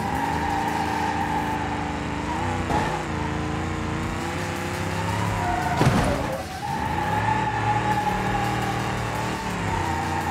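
Tyres screech on pavement.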